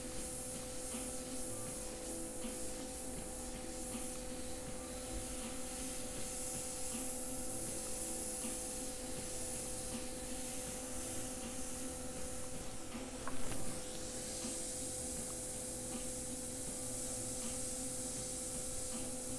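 An airbrush hisses steadily as it sprays paint.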